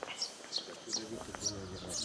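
A man's footsteps tap on a stone path.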